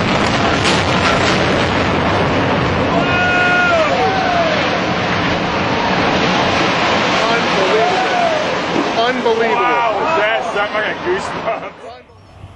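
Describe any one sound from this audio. A tall building collapses with a deep, roaring rumble.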